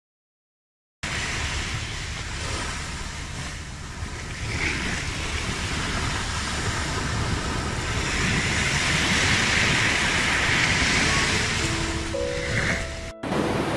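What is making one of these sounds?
Gentle waves wash onto a sandy beach.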